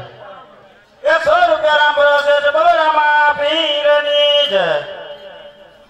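A man sings loudly through a microphone in a room that echoes.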